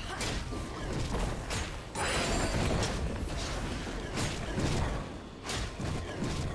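Magic spells whoosh and crackle in quick bursts during a fight.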